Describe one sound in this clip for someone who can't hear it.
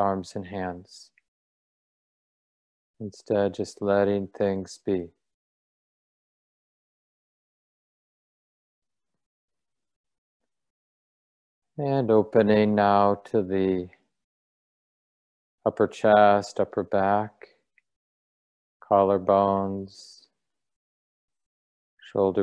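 A man speaks calmly in short phrases through an online call, with long pauses.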